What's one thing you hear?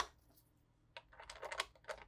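A ratchet wrench clicks as a bolt is turned.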